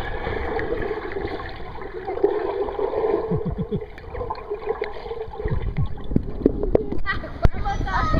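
Water rushes and bubbles in a muffled way underwater.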